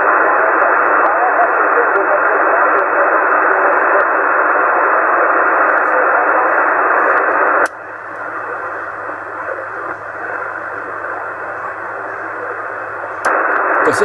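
A radio receiver hisses with loud static, quieter for a while before rising again.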